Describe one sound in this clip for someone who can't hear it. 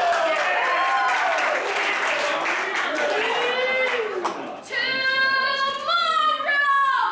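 A man sings out in long, wavering, gliding tones.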